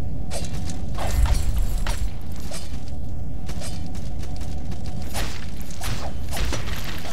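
A sword whooshes through the air in quick slashes.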